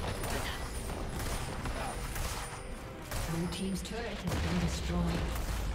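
Spell blasts and impacts burst in quick succession.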